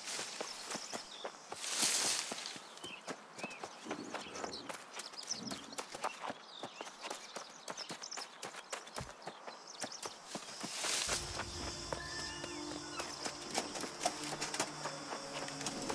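Footsteps swish through dry grass.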